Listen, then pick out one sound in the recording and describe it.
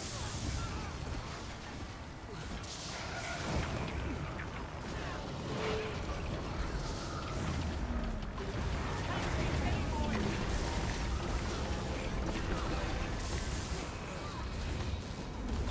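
Game spells crackle and burst in a busy battle.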